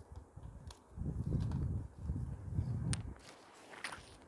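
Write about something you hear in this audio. Paper crinkles softly as it is handled.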